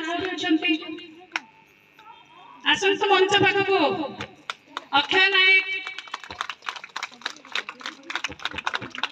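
A woman speaks into a microphone over a loudspeaker, with some animation.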